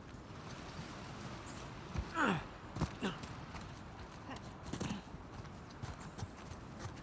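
Footsteps thud on grass and stone steps.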